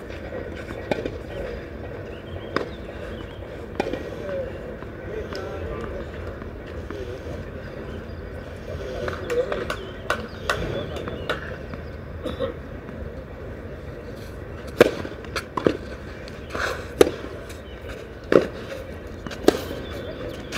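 A tennis ball is struck back and forth with sharp pops of the rackets.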